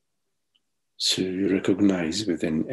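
A middle-aged man speaks through an online call.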